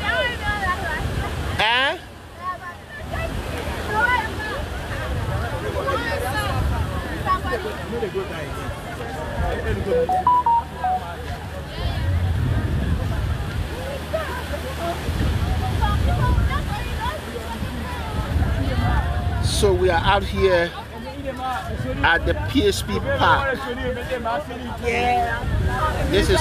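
A crowd of young people chatter and shout outdoors at night.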